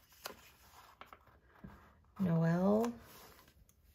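A sticker peels off a backing sheet.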